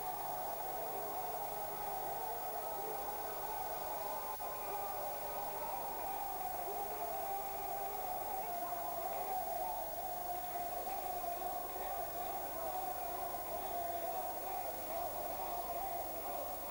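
A large crowd of men and women cheers and shouts loudly in a big echoing hall.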